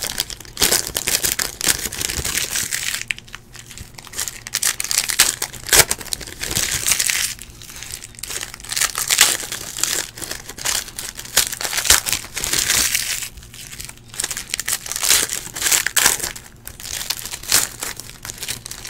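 Foil card wrappers crinkle and tear as hands open them.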